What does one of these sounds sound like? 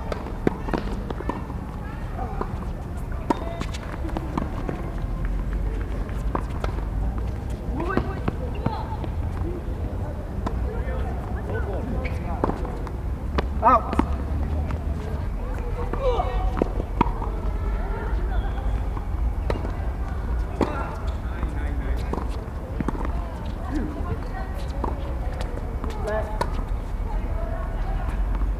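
Men talk and call out across the court, outdoors.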